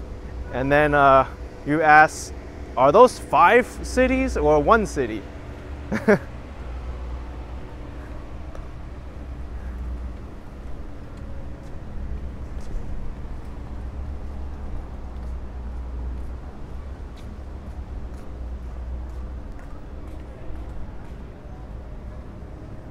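Distant city traffic hums steadily outdoors.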